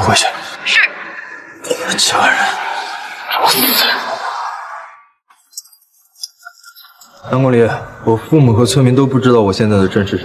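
A young man speaks coldly and sternly.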